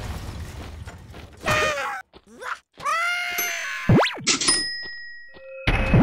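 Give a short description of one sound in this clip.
Electronic zaps and blasts from a video game ring out in quick bursts.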